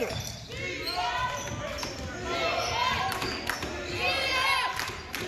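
Sneakers squeak sharply on a hard court in an echoing gym.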